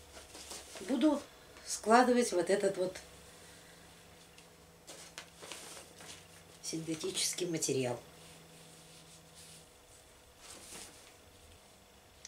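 A plastic bag rustles as a woman handles it.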